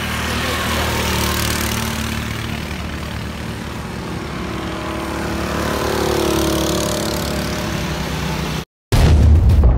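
A go-kart engine drones and whines as the kart drives along a track.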